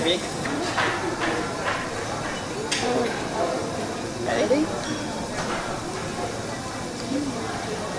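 Chopsticks clink against plates.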